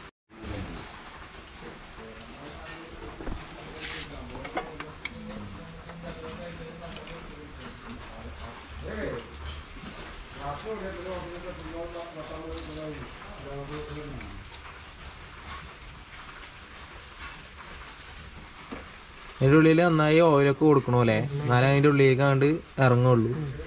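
Metal tools clink and tap against car parts.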